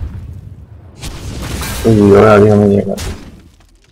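Fantasy game sound effects whoosh, strike and chime.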